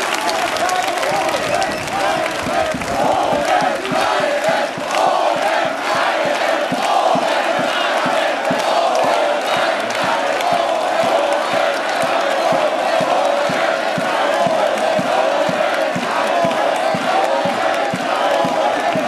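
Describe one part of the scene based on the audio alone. A large crowd chants and shouts loudly in rhythm.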